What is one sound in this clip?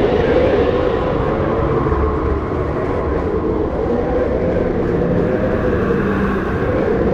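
Strong wind howls steadily outdoors.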